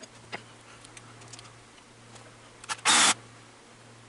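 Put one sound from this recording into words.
Metal parts clink and knock as a hand handles a drill.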